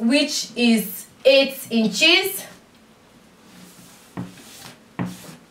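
Hands smooth and rub cloth with a soft rustle.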